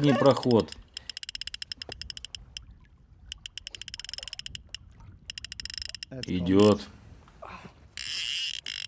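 A fishing reel clicks rapidly.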